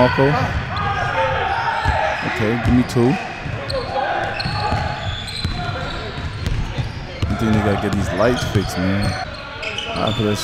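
A basketball bounces on a hard wooden floor in a large echoing gym.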